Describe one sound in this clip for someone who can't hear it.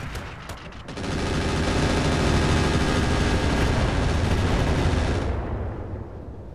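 A loud explosion roars and rumbles, then slowly dies away.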